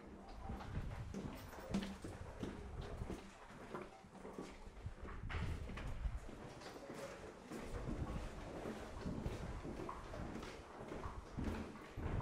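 Footsteps walk along a hard floor indoors.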